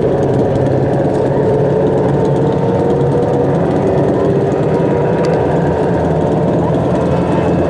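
Race car engines roar loudly nearby.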